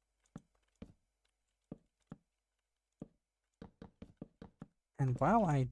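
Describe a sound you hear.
Wooden blocks are placed with short, soft knocks.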